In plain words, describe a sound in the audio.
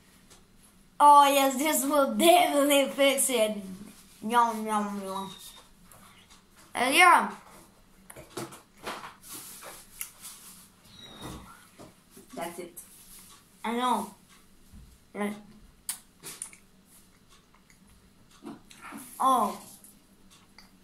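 A young boy talks and sings with animation close by, in bursts.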